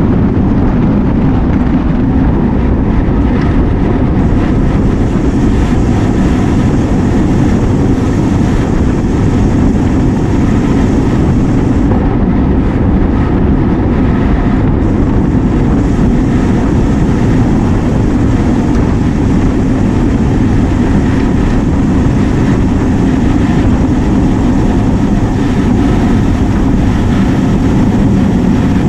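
Wind rushes loudly past the ears of a cyclist riding fast outdoors.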